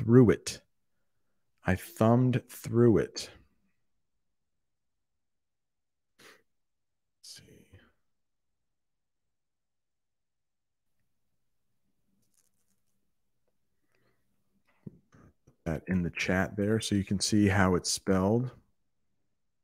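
A middle-aged man speaks calmly and close into a microphone, with long pauses.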